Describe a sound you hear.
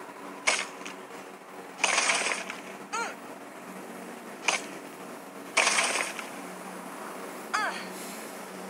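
A weapon strikes with sharp thuds.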